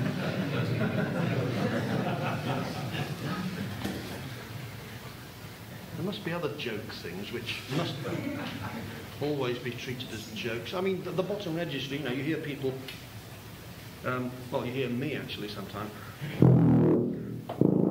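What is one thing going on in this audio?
A tuba plays a low melody.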